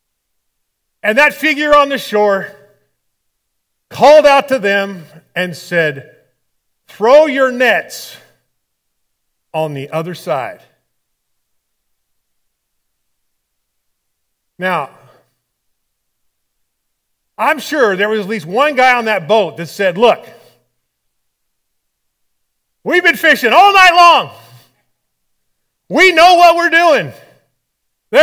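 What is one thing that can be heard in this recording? A man speaks with animation through a microphone, in phrases broken by pauses.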